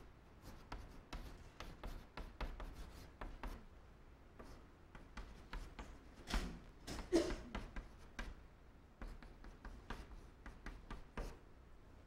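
Chalk taps and scrapes on a blackboard in quick strokes.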